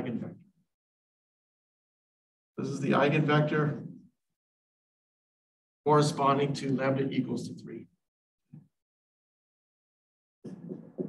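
A man speaks calmly, close to a microphone, in short bursts.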